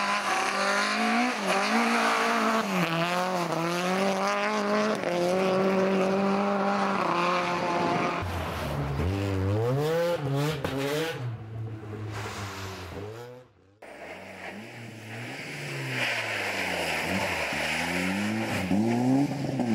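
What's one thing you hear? Tyres crunch and slide on snow.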